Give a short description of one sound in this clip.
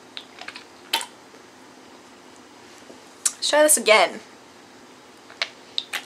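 A young woman sips and swallows a drink from a can.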